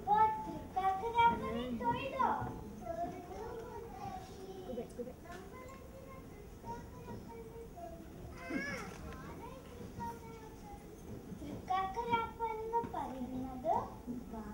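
Performers sing in a large hall, heard through loudspeakers.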